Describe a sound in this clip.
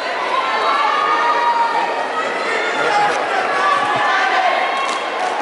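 A large crowd cheers and screams in a big echoing hall.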